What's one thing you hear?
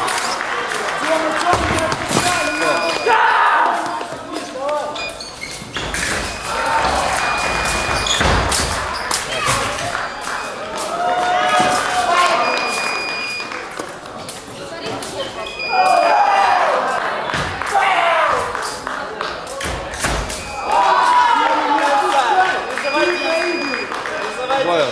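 Fencing blades clash and clatter.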